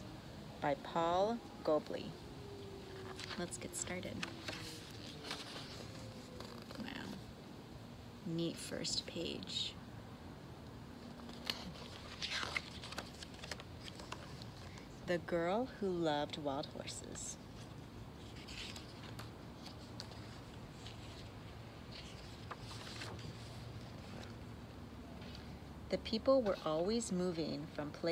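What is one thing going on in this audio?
A young woman reads aloud calmly and expressively, close by.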